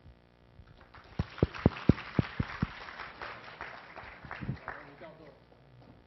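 An audience claps and laughs in a large hall.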